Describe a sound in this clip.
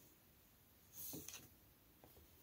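A wooden shuttle knocks lightly against a loom.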